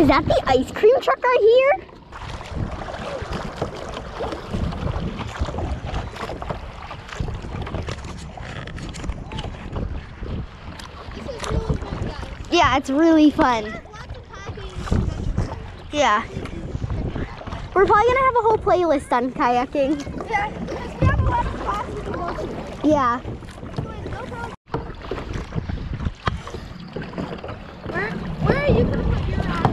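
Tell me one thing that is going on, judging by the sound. A boy talks with animation nearby.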